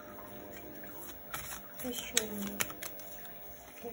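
Playing cards riffle and slap softly as they are shuffled by hand.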